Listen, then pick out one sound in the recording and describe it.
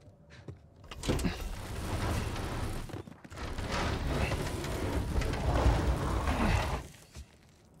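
A heavy wooden shelf scrapes loudly across a floor as it is pushed.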